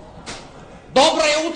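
A woman speaks loudly.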